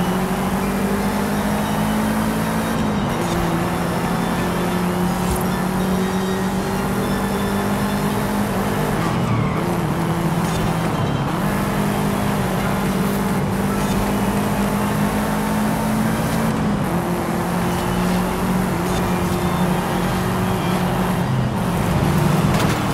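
A rally car engine roars at high revs, shifting gears as it races.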